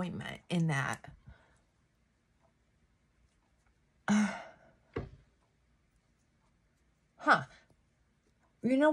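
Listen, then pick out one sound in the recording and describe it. An older woman speaks calmly close to the microphone, in short bursts with pauses.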